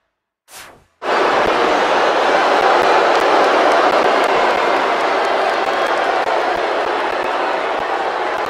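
A wrestler's body thuds onto the floor.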